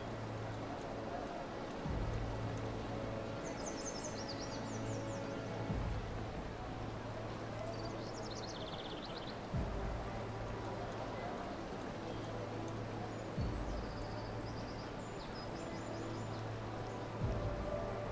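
Water rushes and splashes steadily.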